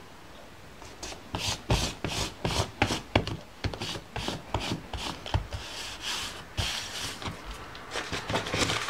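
Hands rub and smooth paper with a dry rustling.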